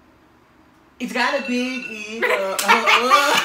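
A girl laughs loudly close by.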